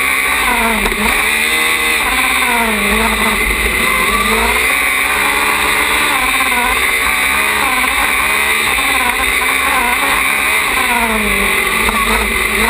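A race car engine revs up and down loudly close by.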